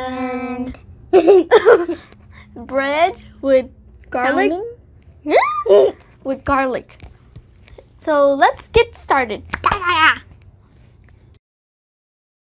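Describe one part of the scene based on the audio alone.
A young boy talks and laughs up close.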